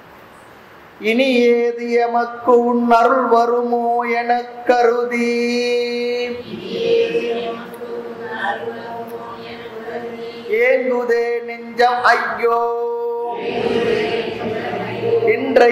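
An elderly man sings a slow, drawn-out chant.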